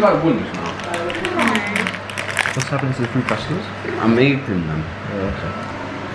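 A snack wrapper crinkles.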